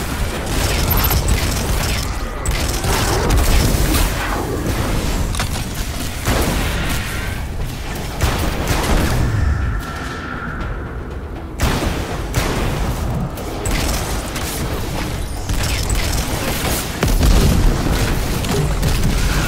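Guns fire in rapid bursts with loud booming blasts.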